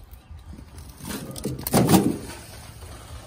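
Bricks clatter and knock inside a wheelbarrow as it rolls.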